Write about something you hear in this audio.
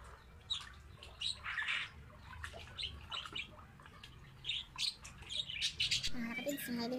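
Water splashes in a bucket as hands move through it.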